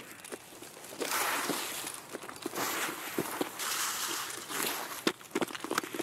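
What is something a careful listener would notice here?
Leafy bushes rustle as someone pushes through them.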